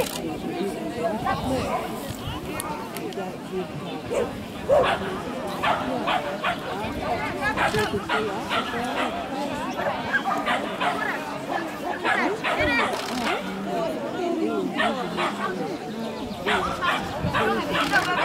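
Men and women chat nearby outdoors.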